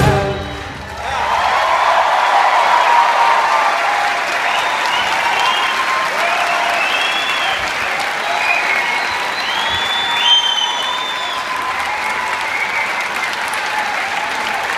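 A large audience applauds loudly in a hall.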